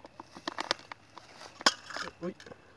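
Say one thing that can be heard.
A plastic cup crackles as it is handled.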